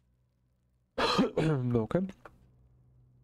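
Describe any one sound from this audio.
A man speaks briefly and with animation into a microphone.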